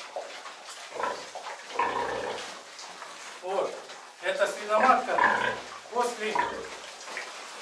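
An elderly man speaks nearby in a loud, animated voice.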